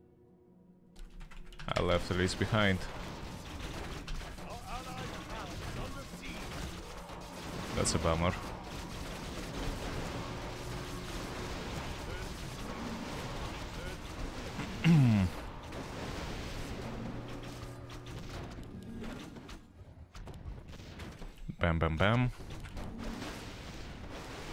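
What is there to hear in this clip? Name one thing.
Game fighting sounds clash and crackle steadily.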